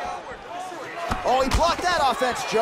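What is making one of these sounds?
A punch lands with a heavy thud.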